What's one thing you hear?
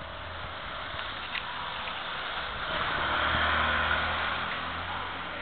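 A motorcycle engine rumbles as it passes close by.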